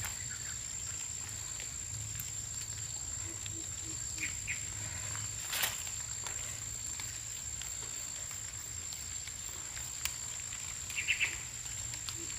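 Chili peppers snap off their stems as they are picked by hand.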